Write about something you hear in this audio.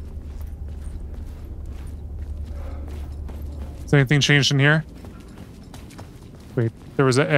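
Footsteps fall on a hard floor.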